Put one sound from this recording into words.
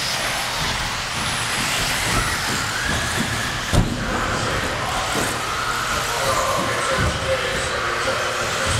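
Small electric model cars whine at high speed around a track.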